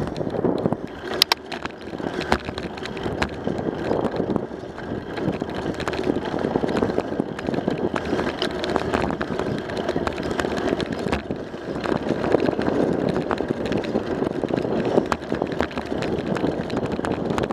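Bicycle tyres hum steadily on a paved path.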